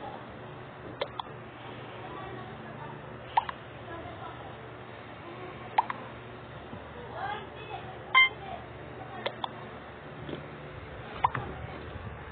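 Short electronic clicks and chimes sound as game buttons are tapped.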